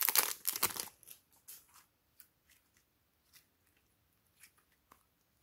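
Soft slime squishes and stretches with sticky clicks.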